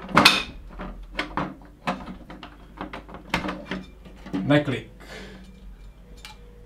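A plastic lamp cover clicks and knocks as it is fitted.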